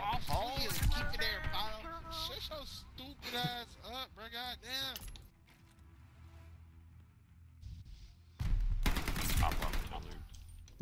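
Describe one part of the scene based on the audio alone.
A gun fires in loud bursts of shots.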